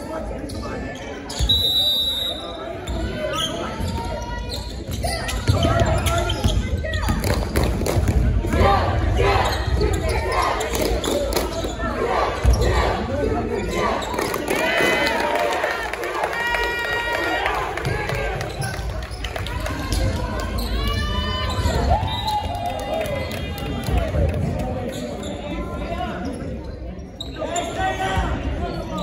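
Sneakers squeak on a hardwood floor in a large echoing gym.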